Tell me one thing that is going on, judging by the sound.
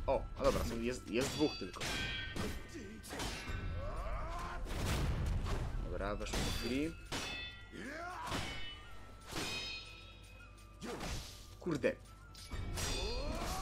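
Swords clash and clang sharply again and again.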